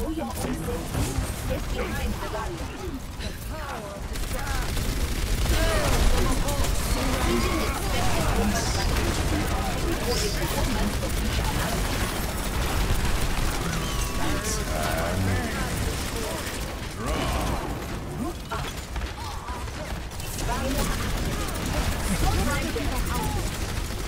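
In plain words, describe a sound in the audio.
Game gunfire blasts rapidly and loudly.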